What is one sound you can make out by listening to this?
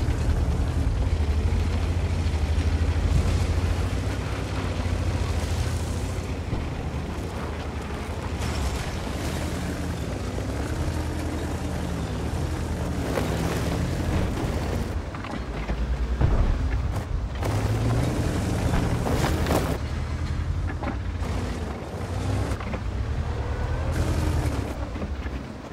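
A tank engine rumbles steadily as a tank drives.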